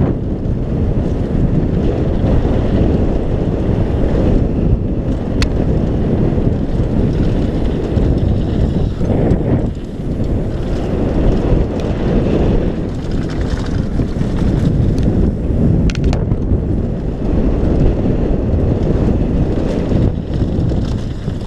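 Wind rushes loudly past a helmet as a bike speeds downhill.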